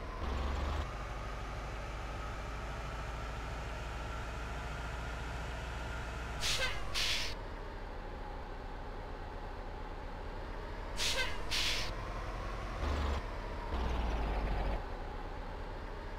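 A bus engine drones steadily, its pitch slowly rising and falling.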